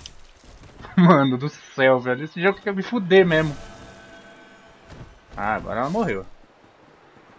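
A young man talks and laughs with animation, close to a microphone.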